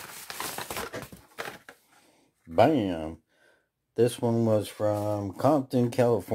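A plastic blister pack crackles in hands.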